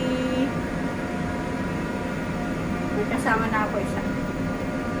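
A train hums and rumbles steadily.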